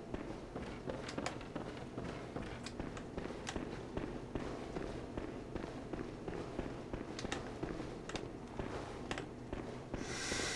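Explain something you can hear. Footsteps tap on stone floor in a running rhythm.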